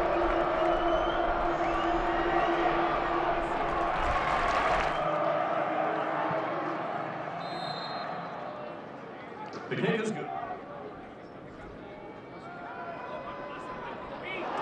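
A large crowd cheers and roars in a stadium, then slowly quiets down.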